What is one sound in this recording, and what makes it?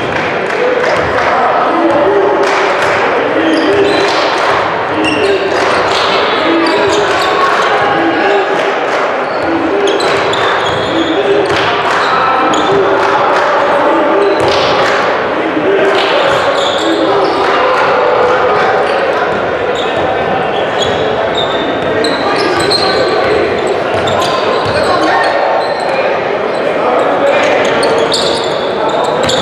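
A basketball bounces on a hardwood court in an echoing gym.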